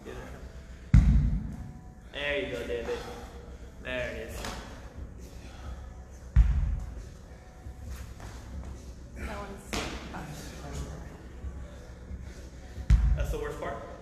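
A kettlebell thuds heavily onto a rubber floor several times.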